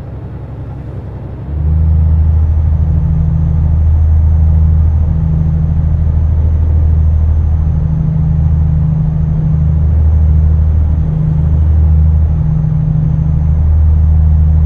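A truck engine drones steadily as the truck drives along a highway.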